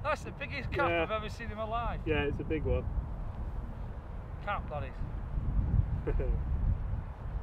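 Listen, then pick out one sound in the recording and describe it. A man talks casually nearby.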